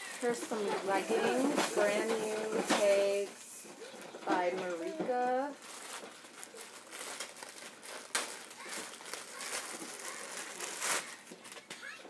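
A plastic bag crinkles as it is torn open.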